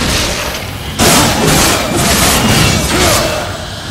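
Blades clash and slash loudly in a fight.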